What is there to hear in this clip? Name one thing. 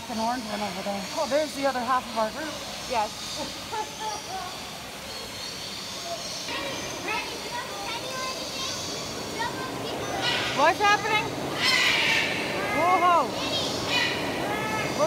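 Birds chirp and whistle nearby.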